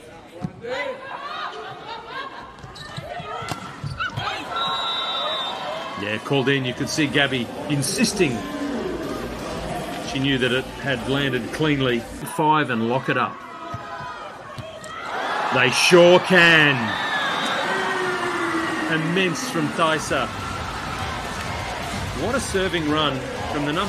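A volleyball is struck hard with a sharp slap.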